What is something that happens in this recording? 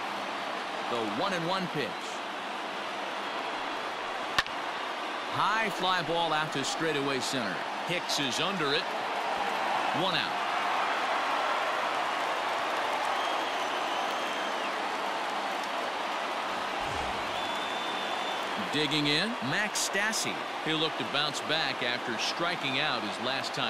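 A large crowd cheers and roars in a big stadium.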